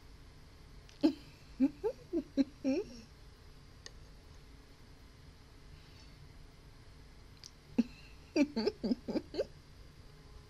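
A young woman laughs close to a microphone in short bursts.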